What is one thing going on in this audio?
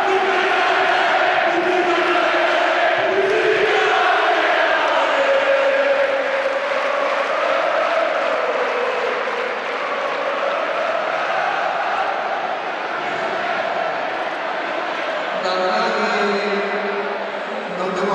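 A large crowd sings and chants loudly, with some echo.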